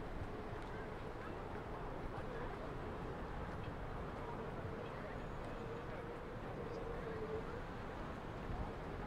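Water laps gently against a harbour wall outdoors.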